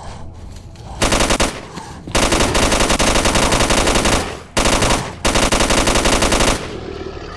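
A rifle fires rapid, loud bursts of automatic gunfire.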